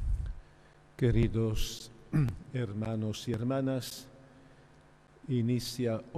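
An elderly man speaks calmly into a microphone, echoing in a large hall.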